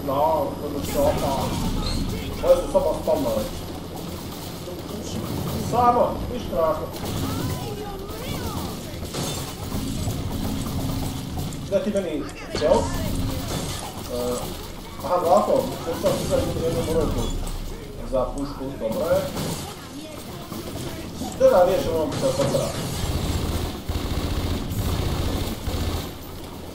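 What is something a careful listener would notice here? A man talks with animation close to a headset microphone.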